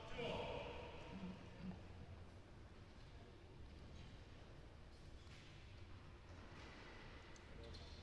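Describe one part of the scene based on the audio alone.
A tennis ball is struck with a racket during a rally.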